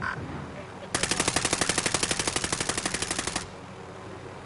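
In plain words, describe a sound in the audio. A helicopter's rotor thuds rapidly.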